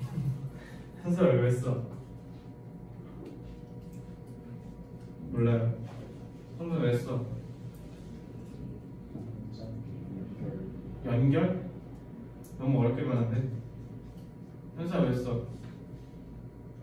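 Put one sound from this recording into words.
A young man speaks calmly in short phrases through a microphone.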